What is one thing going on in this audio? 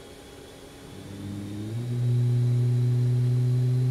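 A jet engine spools up and settles into a loud, steady drone.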